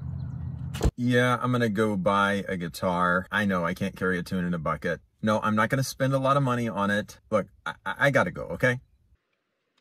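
A man talks calmly into a phone up close.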